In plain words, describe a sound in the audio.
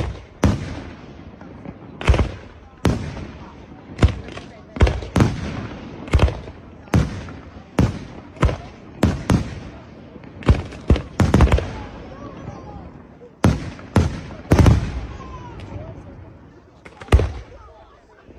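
Fireworks burst with loud booming bangs that echo away.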